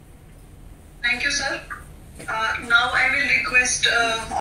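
A man speaks steadily through a loudspeaker in an online call.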